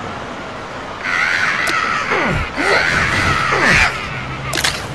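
Zombies growl and groan loudly.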